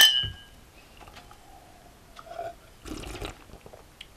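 A man sips a drink close by.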